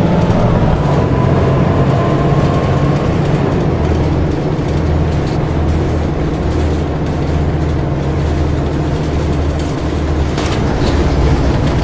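A diesel city bus engine drones as the bus cruises along a street.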